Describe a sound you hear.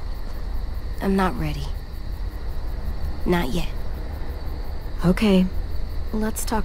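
A young girl speaks calmly in short phrases, close by.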